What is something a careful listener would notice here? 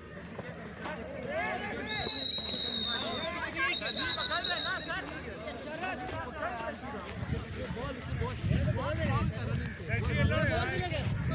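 Young men shout and call out to one another outdoors in the distance.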